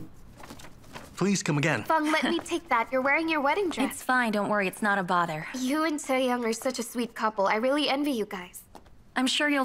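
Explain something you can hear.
Two young women chat with animation nearby.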